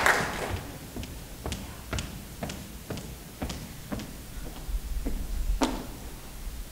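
Footsteps tap across a stage.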